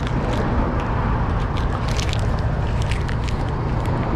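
Footsteps tap on a pavement close by.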